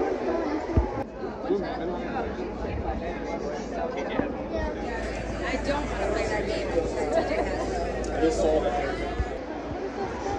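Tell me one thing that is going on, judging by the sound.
People chatter and talk in a crowd outdoors.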